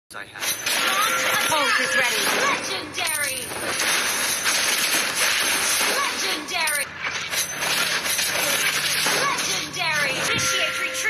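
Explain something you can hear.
Game battle effects clash and whoosh with rapid bursts of spell sounds.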